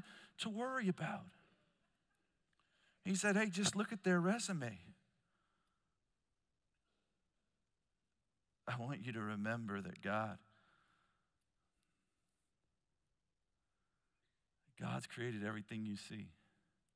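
A man speaks calmly into a microphone in bursts with pauses.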